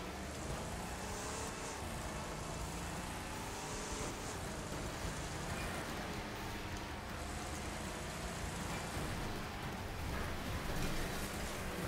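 Many car engines roar and rev loudly together.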